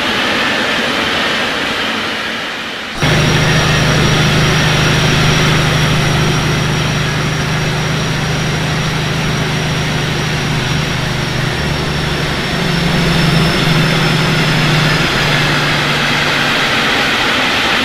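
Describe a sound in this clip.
Train wheels rumble over the tracks.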